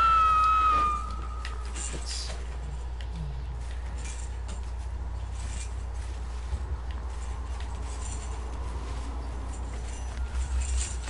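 Footsteps run quickly through rustling undergrowth.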